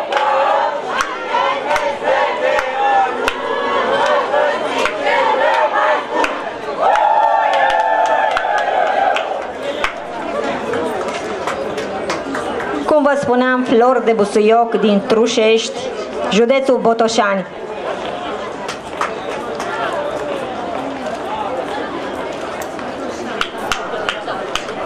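Dancers' feet stamp and shuffle on pavement.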